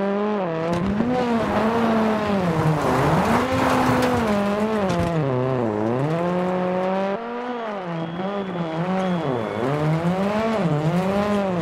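A rally car engine revs hard, rising and falling in pitch as gears change.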